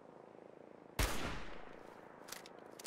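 A rifle fires a single loud shot that echoes away.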